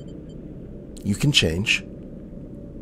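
A short game menu chime sounds as a choice is picked.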